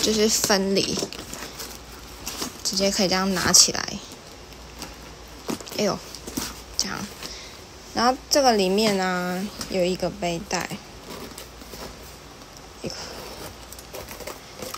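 A leather bag rustles and creaks as hands handle it.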